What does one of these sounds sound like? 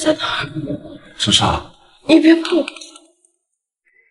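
A young man speaks urgently up close.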